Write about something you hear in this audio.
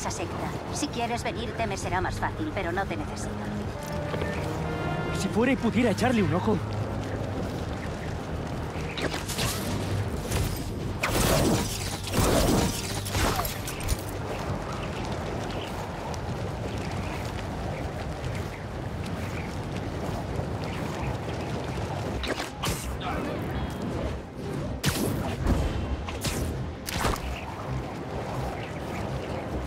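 Wind rushes loudly past in whooshing gusts.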